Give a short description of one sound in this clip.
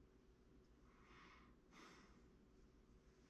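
A tool scrapes softly against clay.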